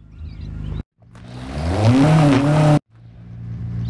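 A car engine revs up and rises in pitch.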